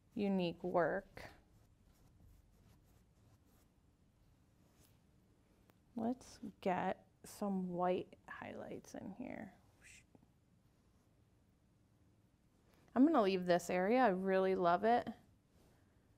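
A woman speaks calmly and clearly into a microphone, in short phrases with pauses.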